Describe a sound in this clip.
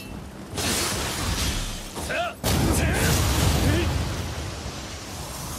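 A sword clashes and slashes in combat.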